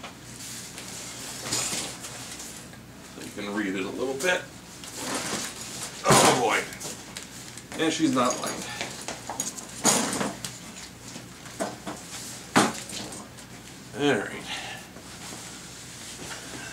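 A cardboard box thumps and scrapes as it is shifted on a metal hand truck.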